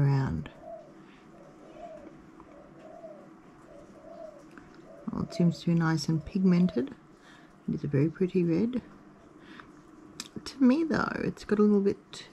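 A paintbrush softly strokes across paper.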